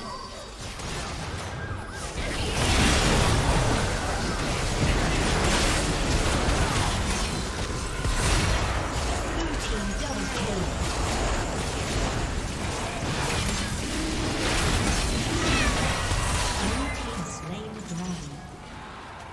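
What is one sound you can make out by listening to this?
Video game spells and attacks burst and clash loudly.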